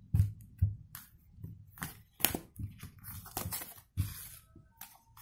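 Playing cards tap and slide against each other.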